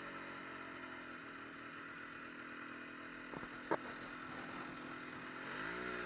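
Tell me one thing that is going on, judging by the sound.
A snowmobile engine hums steadily close by and revs up at the end.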